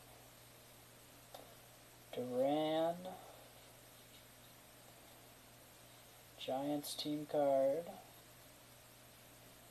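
Trading cards slide and rustle softly as they are flipped through by hand.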